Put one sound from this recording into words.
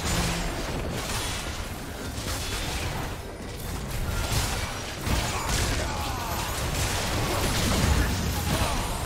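Video game weapons clash with sharp hits.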